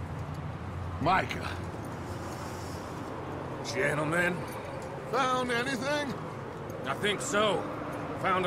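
A man speaks gruffly close by.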